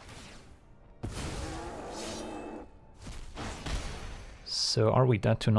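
Soft electronic whooshes and chimes sound from a card game.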